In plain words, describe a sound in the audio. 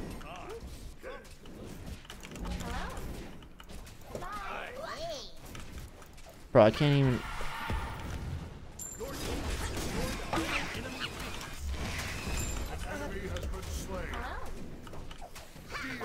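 Game effects whoosh and blast with fiery bursts.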